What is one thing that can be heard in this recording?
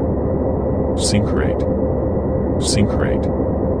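A cockpit warning alert sounds twice.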